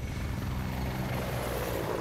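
A helicopter roars overhead as it spins through the air.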